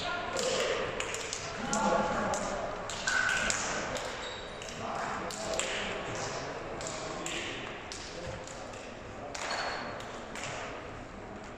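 Hands slap together as players shake hands.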